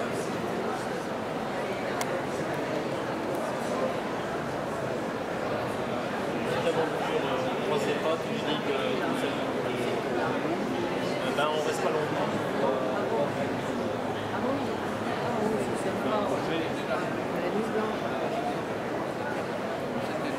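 A crowd of adults murmurs and chatters in a large echoing hall.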